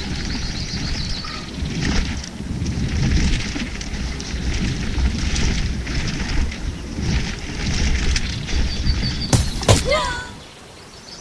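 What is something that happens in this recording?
Bicycle tyres rumble steadily over rough dirt.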